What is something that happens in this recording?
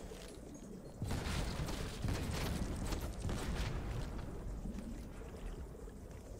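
Fire roars and crackles on a burning ship.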